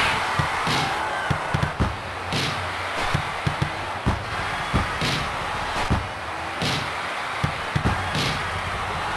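A crowd roars steadily in a stadium.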